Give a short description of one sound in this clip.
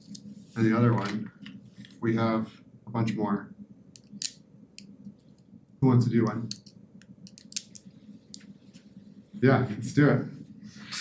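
A man speaks to a room in short phrases, heard through a microphone.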